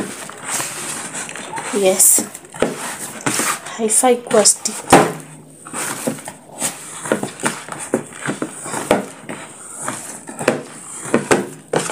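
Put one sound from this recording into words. Hands knead soft dough in a plastic bowl, squishing and slapping it.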